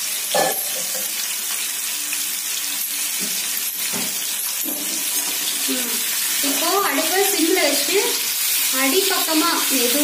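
Oil sizzles in a frying pan.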